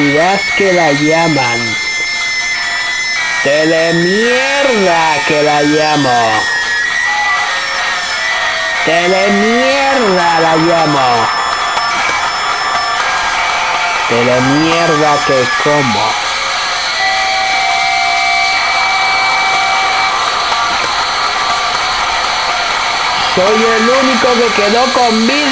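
Electronic music with a gliding synth melody plays through small laptop speakers.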